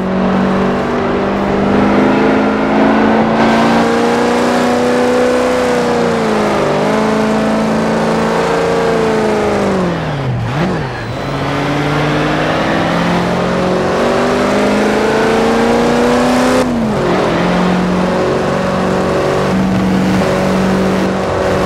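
A truck engine roars steadily, its pitch rising as it speeds up and dropping sharply as it slows.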